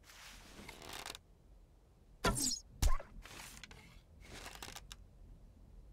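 A bow twangs as an arrow is shot.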